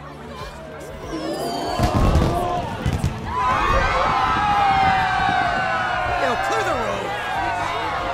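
Fireworks burst and crackle overhead.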